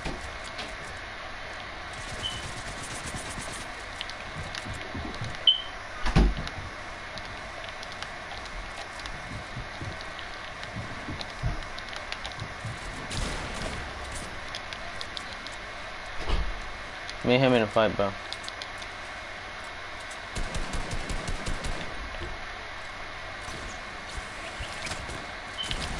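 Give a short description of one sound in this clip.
Game building pieces snap into place with quick clicks and thuds.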